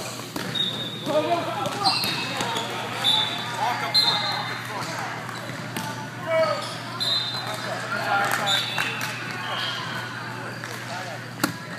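Men call out and talk loudly in a large echoing hall.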